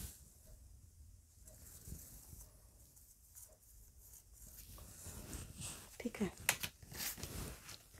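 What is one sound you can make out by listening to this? A metal ruler taps and slides on cloth.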